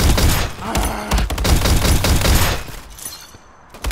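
A rifle fires sharp shots in quick succession.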